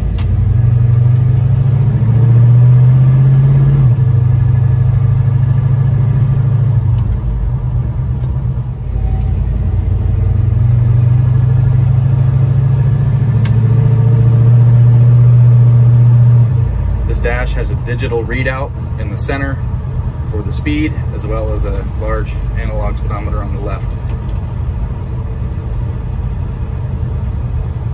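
A car engine rumbles loudly, revving up and easing off as the car drives.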